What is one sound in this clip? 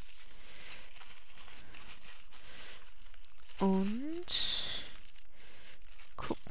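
Paper and plastic film rustle and crinkle as hands handle them.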